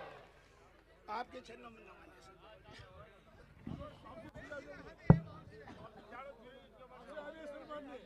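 A large crowd murmurs and chatters quietly.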